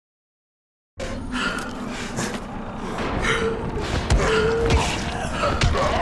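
Heavy blows thud against a body in a scuffle.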